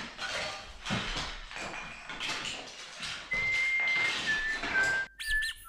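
Plastic toys clatter as they are picked up and dropped.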